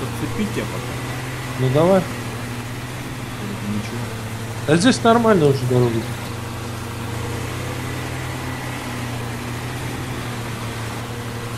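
A truck engine drones steadily as the truck drives.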